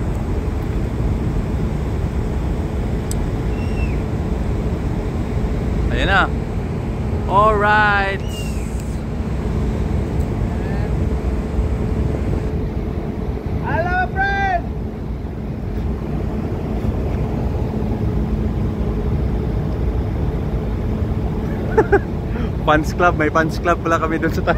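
Wind rumbles over the microphone outdoors.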